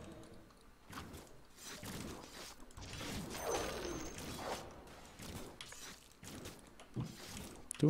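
Magic spells burst and crackle in a game fight.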